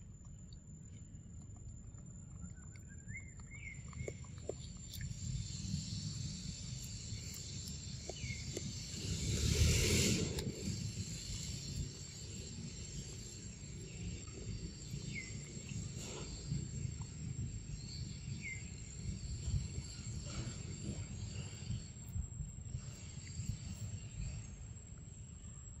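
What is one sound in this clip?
A monkey chews and slurps on soft fruit up close.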